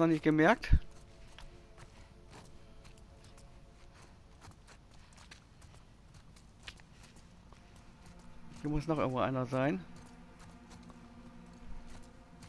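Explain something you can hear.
Soft footsteps shuffle slowly over gritty debris.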